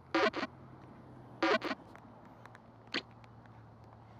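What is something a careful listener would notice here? A game ball clicks and rattles as it wobbles.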